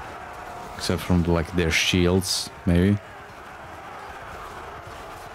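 Swords clash in a large battle.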